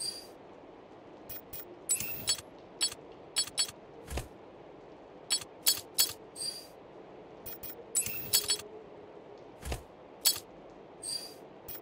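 Short menu clicks and soft chimes sound again and again.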